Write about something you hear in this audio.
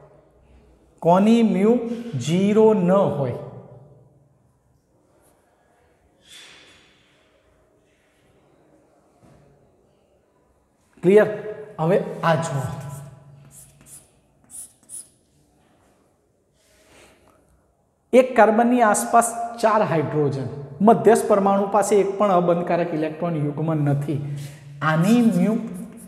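A man speaks clearly and at an even pace, close by.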